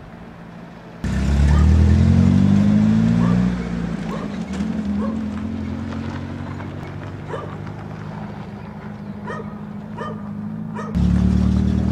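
A pickup truck engine rumbles loudly up close and fades as the truck drives away.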